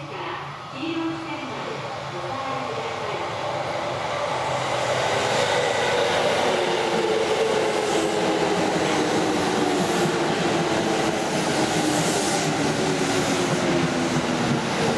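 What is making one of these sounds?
An electric train approaches and rumbles in along the rails, growing louder.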